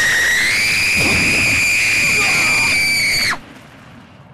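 A young boy screams, high-pitched and sustained.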